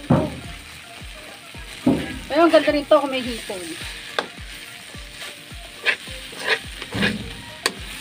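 A spatula scrapes and clatters against a metal wok.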